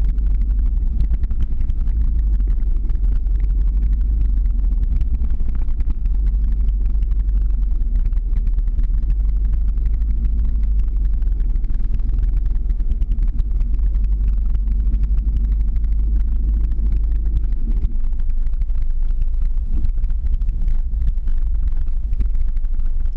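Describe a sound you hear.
Skateboard wheels roll and rumble on the road.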